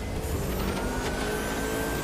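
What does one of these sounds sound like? Exhaust flames pop and crackle from a racing car.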